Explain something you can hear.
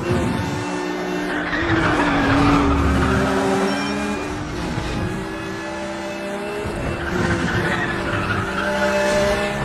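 A sports car engine roars at high revs, rising and falling with gear changes.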